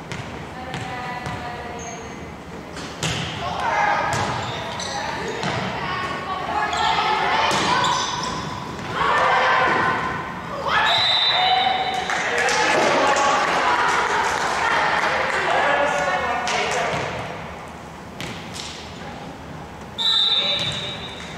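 Young women and spectators shout and cheer in an echoing gym.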